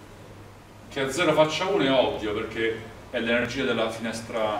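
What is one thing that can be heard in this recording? A young man speaks calmly, explaining.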